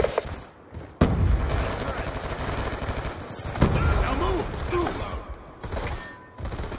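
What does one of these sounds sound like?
Gunfire rattles.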